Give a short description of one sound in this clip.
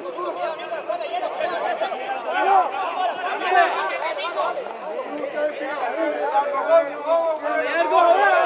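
Several young men shout and call out to each other across an outdoor pitch.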